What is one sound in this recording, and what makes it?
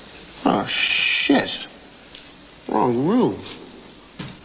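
A man speaks in a hushed, uneasy voice nearby.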